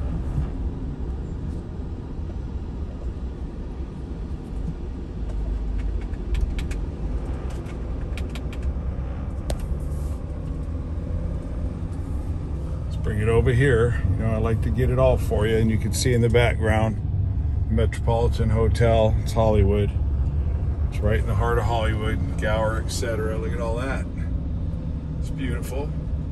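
Traffic rushes past nearby.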